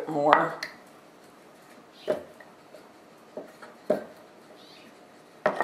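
A rolling pin rolls and thumps softly over dough on a wooden board.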